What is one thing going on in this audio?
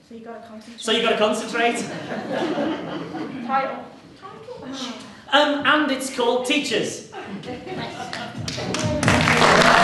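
A woman talks with animation in an echoing hall.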